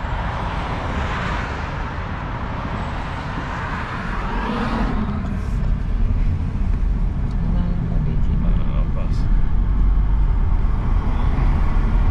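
A car engine hums low and steadily from inside the cabin.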